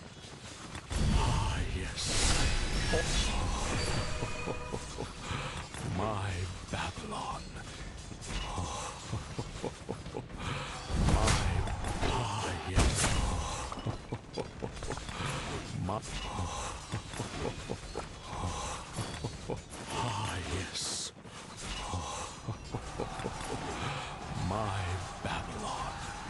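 Game battle sounds clash and thud steadily.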